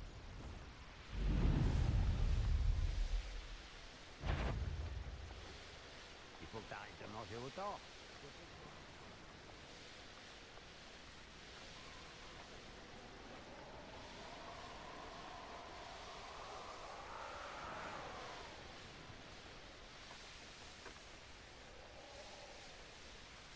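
Wind rushes steadily past during fast flight.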